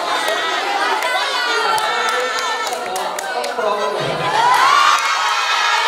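A crowd laughs.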